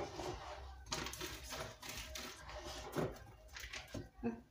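A knife saws through crusty bread with a crackling sound.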